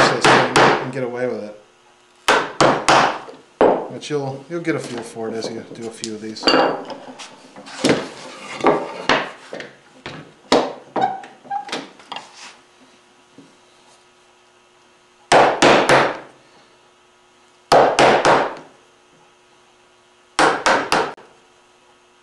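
A chisel is struck into wood with sharp knocks.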